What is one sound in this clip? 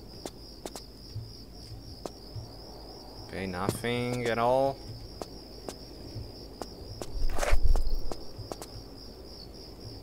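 Light footsteps tap quickly on a hard floor.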